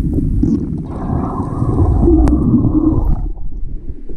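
Air bubbles burble up through water.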